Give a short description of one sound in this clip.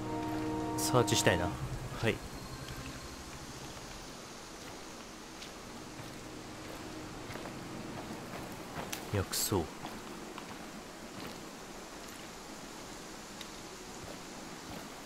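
Footsteps tread softly over grass and forest ground.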